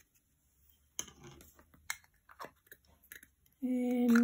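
A small paint jar lid is twisted and clicks.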